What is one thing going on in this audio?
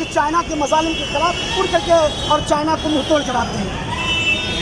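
A man talks loudly and with agitation close by.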